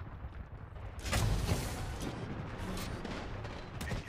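Heavy metal doors of a giant robot clank shut.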